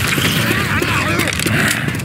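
A zombie snarls and growls nearby.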